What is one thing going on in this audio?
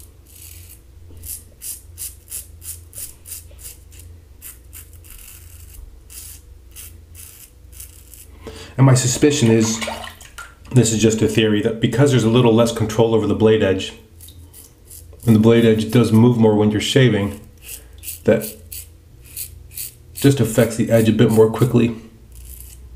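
A razor scrapes through stubble in short strokes.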